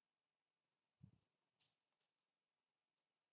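A paper leaflet rustles faintly in a hand.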